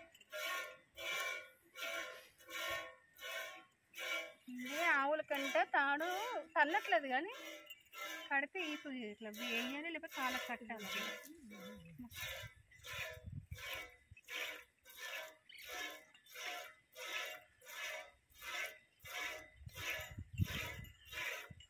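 Milk squirts rhythmically into a metal pail.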